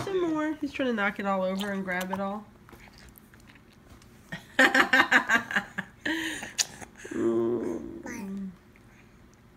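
A baby babbles and squeals loudly close by.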